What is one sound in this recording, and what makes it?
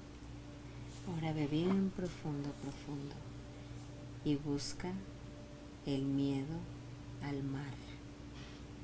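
A middle-aged woman snores in her sleep, close by.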